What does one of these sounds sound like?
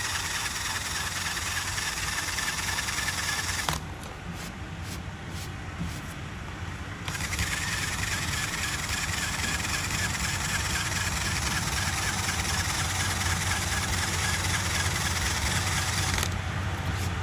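A drill-driven rubber eraser wheel whines as it scrubs glue off a fiberglass panel.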